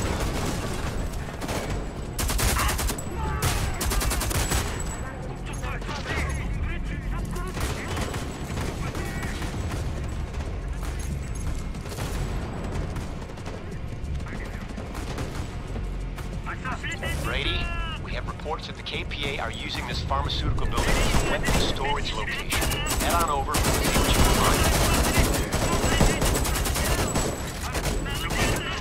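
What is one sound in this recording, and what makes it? Rapid gunfire bursts loudly and close by.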